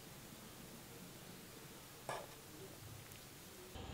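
A metal spoon clinks against a metal tray.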